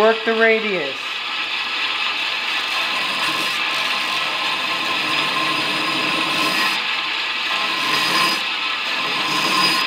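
A metal blade grinds against a running sanding belt with a rough hiss.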